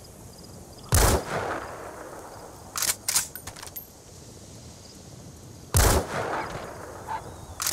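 A rifle fires loud shots that echo away.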